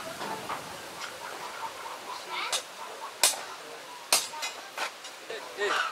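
A wooden stick thumps repeatedly into a plastic can.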